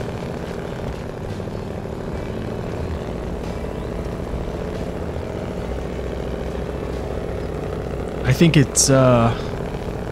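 A heavy truck engine rumbles steadily as the truck crawls through mud.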